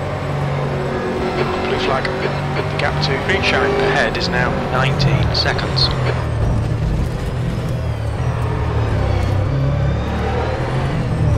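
A racing car engine roars steadily, shifting pitch as it speeds up and slows.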